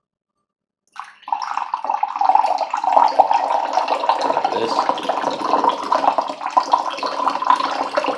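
A drink pours and splashes into a mug.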